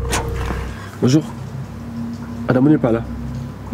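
A young man speaks briefly and calmly, close by.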